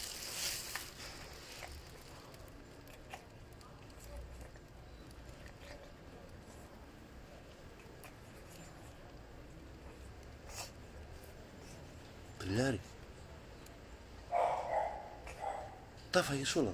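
A cat chews and crunches food close by.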